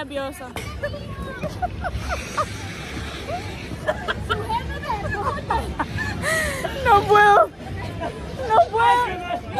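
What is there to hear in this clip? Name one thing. A young woman talks and laughs with excitement close to the microphone.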